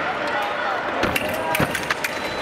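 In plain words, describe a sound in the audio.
Fencing blades clash and click sharply.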